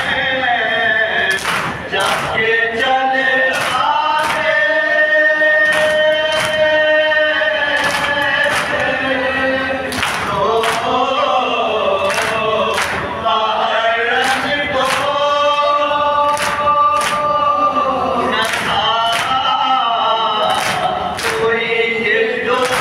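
A crowd of men beat their chests in a steady rhythm.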